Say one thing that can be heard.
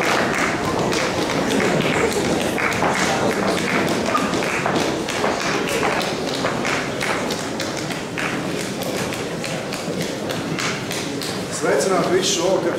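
A women's choir sings together in an echoing hall.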